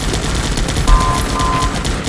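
Flames roar and crackle in a game.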